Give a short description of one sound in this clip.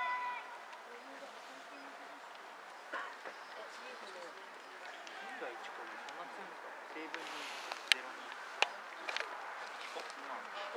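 Young men shout to each other across an open field, some distance away.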